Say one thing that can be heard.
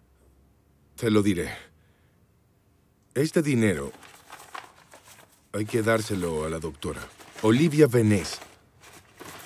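A man speaks in a low, calm voice nearby.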